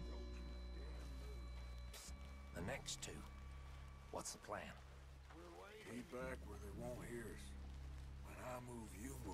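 Footsteps rustle slowly through tall grass.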